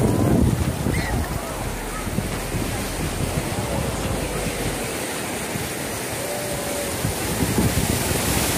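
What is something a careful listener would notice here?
Wind blows outdoors.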